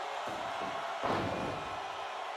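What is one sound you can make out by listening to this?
A body slams onto a mat with a heavy thud.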